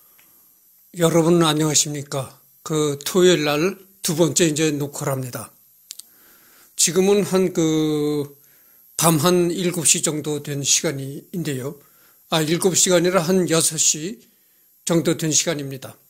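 A middle-aged man speaks calmly, close to the microphone.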